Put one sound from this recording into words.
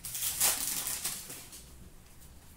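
Foil card packs crinkle and rustle as hands sort through them.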